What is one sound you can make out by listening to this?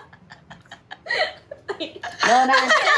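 Another young woman talks and giggles close by.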